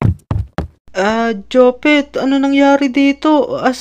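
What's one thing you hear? A second young boy's cartoon voice answers with animation.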